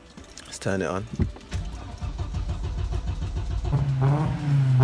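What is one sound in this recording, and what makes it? A car engine idles with a deep, low rumble.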